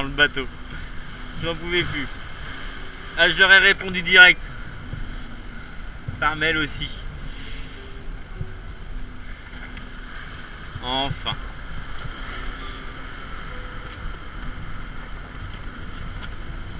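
Waves rush and splash against a sailing boat's hull.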